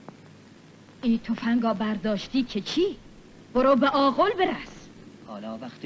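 An elderly woman speaks urgently.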